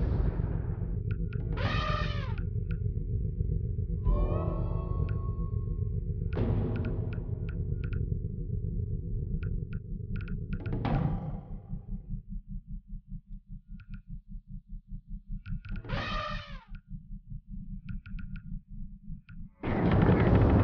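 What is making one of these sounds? Soft electronic clicks and whooshes sound as menu options are selected.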